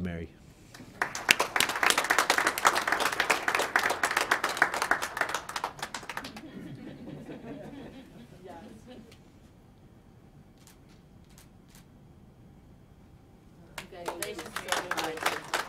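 A group of people applauds.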